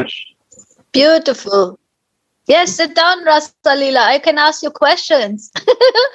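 A middle-aged woman talks calmly over an online call.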